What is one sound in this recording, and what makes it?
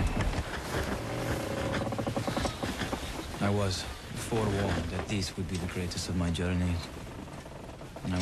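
Large cloth sails flap and rustle in the wind.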